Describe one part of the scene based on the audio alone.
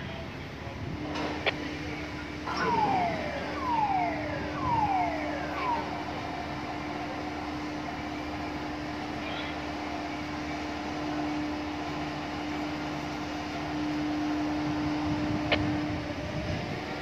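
A large dockside crane hums steadily as it moves along its rails.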